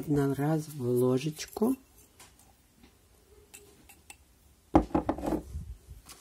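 A plastic spoon scrapes powder inside a glass jar.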